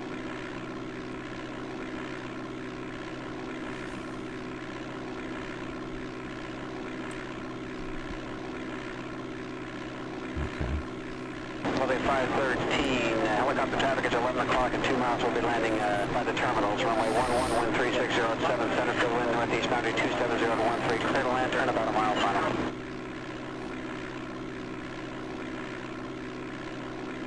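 A small plane's engine drones steadily.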